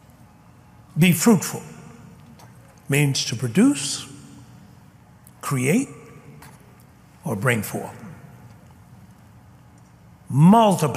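A man speaks forcefully, in short bursts with pauses, through a microphone.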